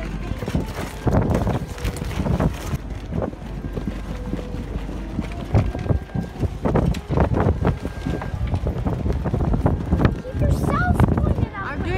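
Loose sailcloth flaps and rustles in the wind.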